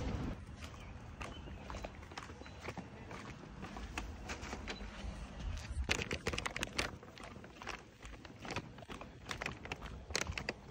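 Paper tags rustle and crinkle in a hand.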